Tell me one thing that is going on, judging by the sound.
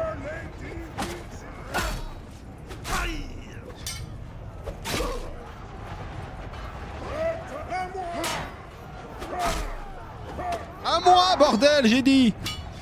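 Weapons strike in sharp, repeated clashes.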